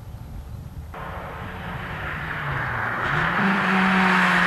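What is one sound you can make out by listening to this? A rally car engine roars closer, revving hard.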